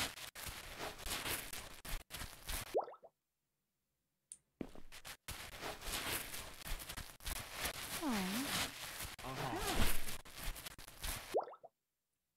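A mop scrubs a wooden floor.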